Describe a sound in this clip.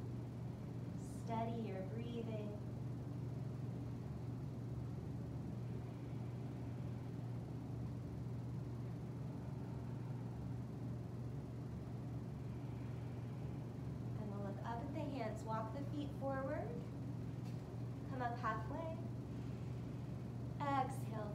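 Electric fans whir steadily.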